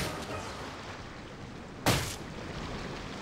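A sword swooshes through the air in a game.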